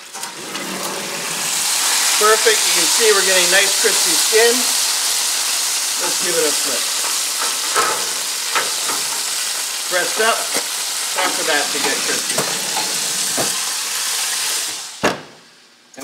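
Hot fat sizzles loudly in a roasting pan.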